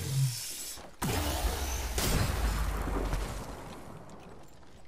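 A heavy electronic whoosh bursts out and slowly fades.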